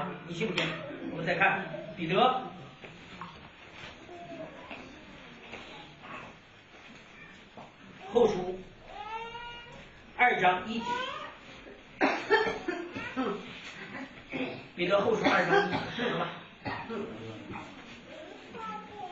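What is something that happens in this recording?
A man speaks calmly into a microphone, lecturing.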